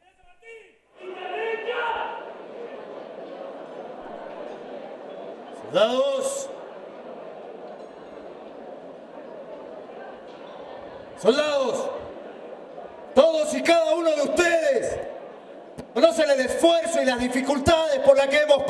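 A large crowd murmurs and chatters in a big echoing tent.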